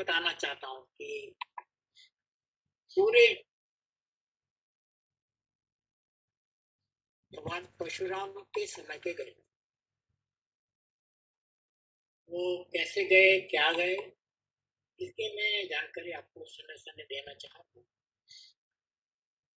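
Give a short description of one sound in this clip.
An elderly man speaks calmly through an online call, in short bursts with pauses.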